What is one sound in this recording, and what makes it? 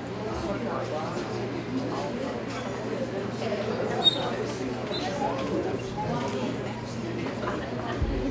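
A crowd of men and women chatters in a room.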